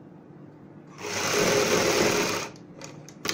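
A sewing machine runs in a fast whirring burst.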